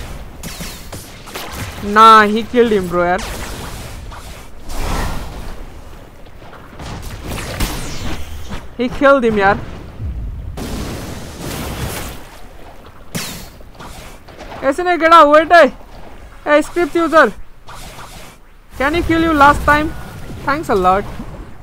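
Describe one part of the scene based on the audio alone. Magic attacks whoosh and crash in a video game.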